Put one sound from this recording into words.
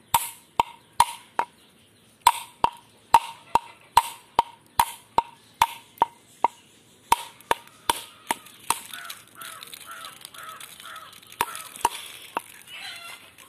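A glass knocks sharply against a coconut shell, over and over.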